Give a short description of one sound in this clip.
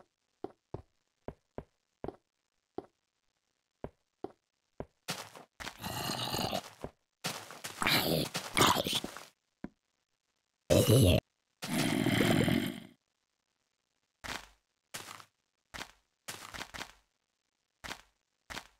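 Footsteps tap steadily on stone and grass.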